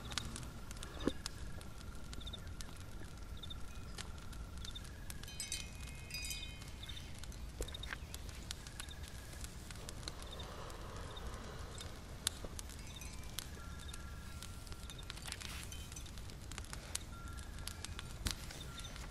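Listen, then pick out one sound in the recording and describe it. A lantern flame crackles softly.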